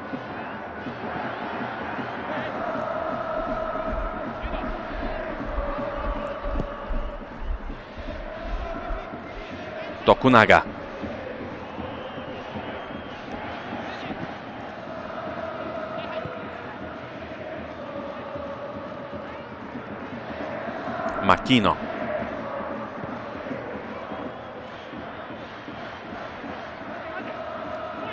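A large stadium crowd chants and sings steadily throughout.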